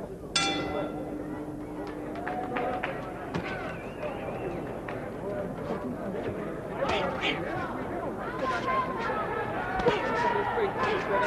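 A crowd cheers and shouts in a large arena.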